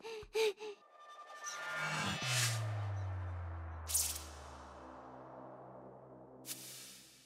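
A magical whoosh swells with a deep rumble.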